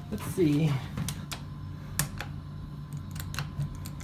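A finger presses an elevator button with a click.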